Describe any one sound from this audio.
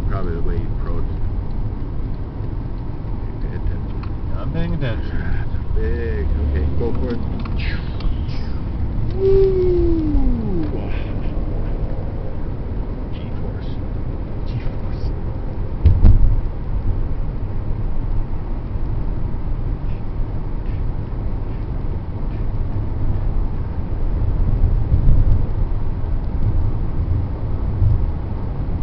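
A car engine hums steadily with low road rumble from inside the car.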